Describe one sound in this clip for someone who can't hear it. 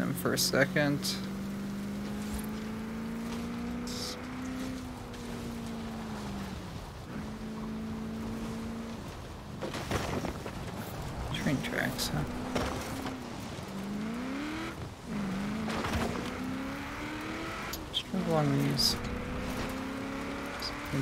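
An engine revs up and down as an off-road truck drives.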